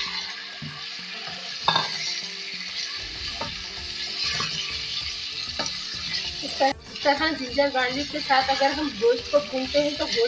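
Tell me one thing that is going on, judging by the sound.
A wooden spoon scrapes and stirs in a pan.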